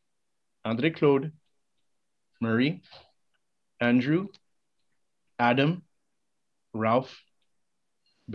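A middle-aged man speaks slowly and formally into a microphone in short phrases, with pauses between them.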